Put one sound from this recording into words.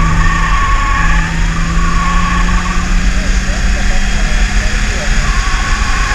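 Wind buffets loudly against the car.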